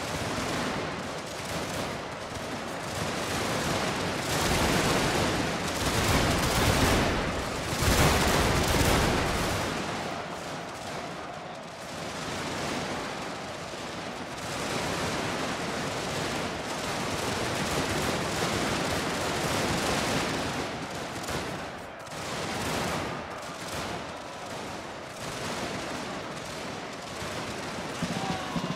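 A large crowd of soldiers tramps and clatters across open ground.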